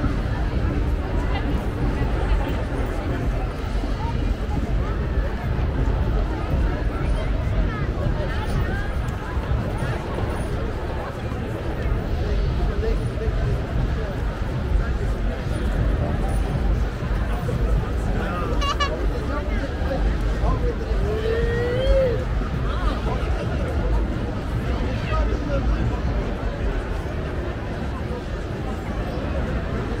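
A large outdoor crowd chatters and murmurs all around.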